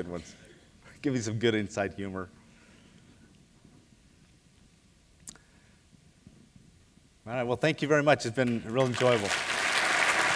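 An older man speaks with animation through a microphone in a large hall.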